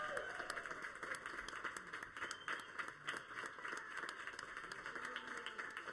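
A group of people clap their hands in lively applause.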